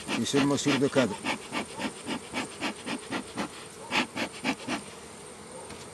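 A bee smoker puffs in quick, even bursts.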